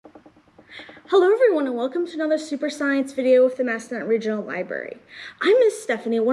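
A woman speaks calmly and clearly to a nearby microphone.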